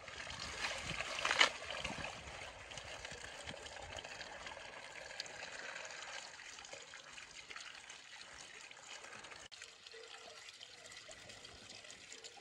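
Hands rub and splash leafy greens in water.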